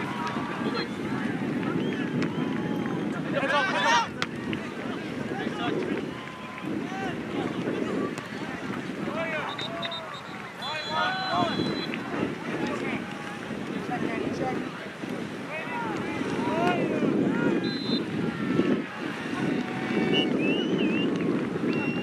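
Players and spectators shout and call out across an open field.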